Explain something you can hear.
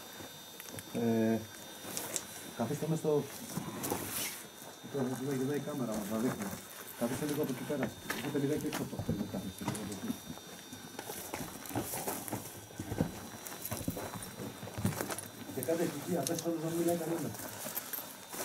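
A man speaks calmly nearby, his voice echoing slightly in an enclosed stone space.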